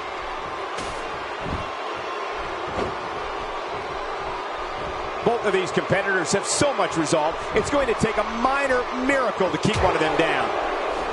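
A large crowd murmurs and cheers in a big arena.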